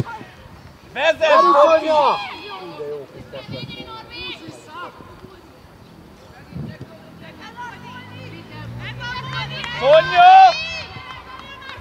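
Children shout loudly across an open field outdoors.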